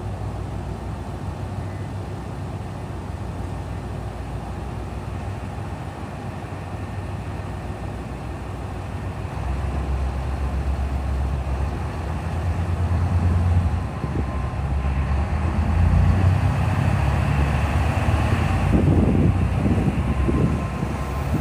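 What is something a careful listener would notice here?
Diesel train engines idle with a low, steady rumble.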